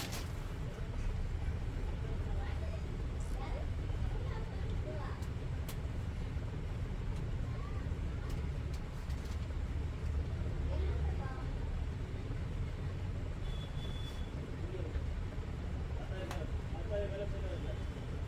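Plastic clicks and knocks as hands handle a toy.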